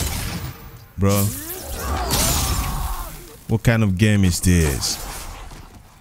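Swords clash and swing in a fight.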